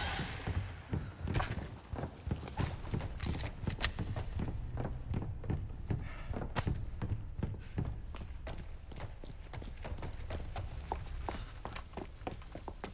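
Footsteps thud quickly on creaking wooden boards.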